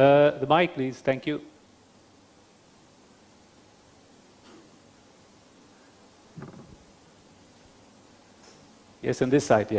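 A man speaks calmly into a microphone, heard over loudspeakers in a large room.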